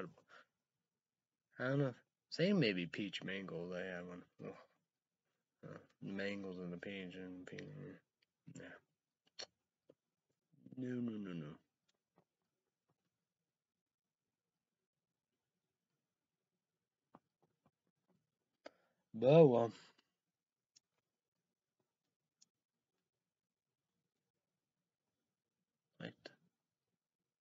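A young man talks calmly and close up, with pauses.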